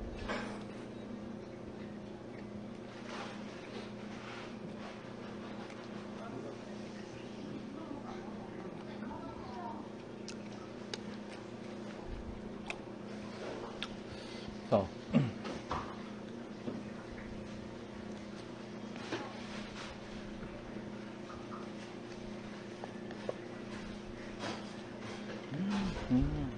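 Paper wrappers crinkle and rustle as food is handled.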